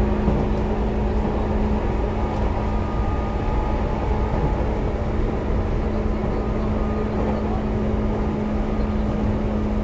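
An electric train rumbles along the tracks with a steady motor hum.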